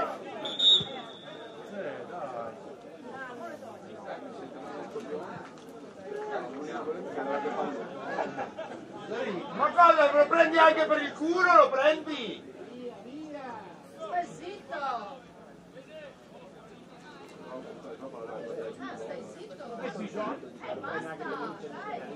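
Young men shout and call to each other outdoors across a field.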